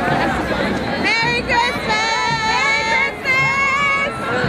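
A crowd of children and adults cheers and shouts outdoors.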